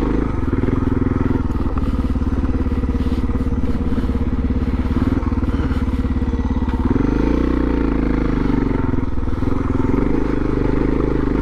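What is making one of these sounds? A motorcycle engine throbs loudly and close by, revving up and down.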